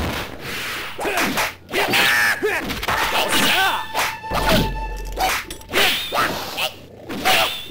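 Blows land with sharp, punchy thuds.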